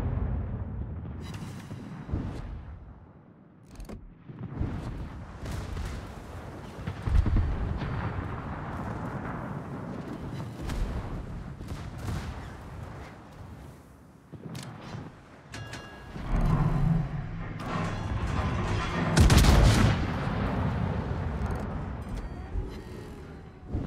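Shells explode against a ship with dull blasts.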